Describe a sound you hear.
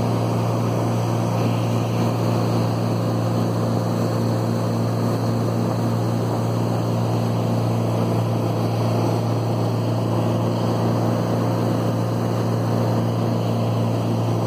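A motorboat engine drones steadily at close range.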